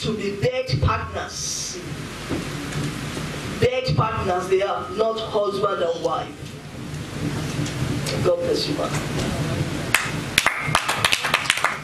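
A woman speaks with animation into a microphone, heard through loudspeakers in an echoing hall.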